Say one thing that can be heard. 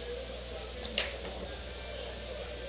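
Pool balls clack together and roll across the table.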